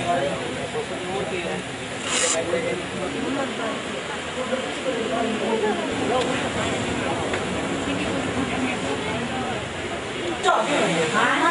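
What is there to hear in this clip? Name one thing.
A crowd of men and women murmur and talk nearby.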